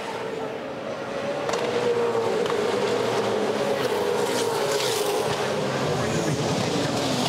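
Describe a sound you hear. Racing car engines roar loudly as the cars speed past.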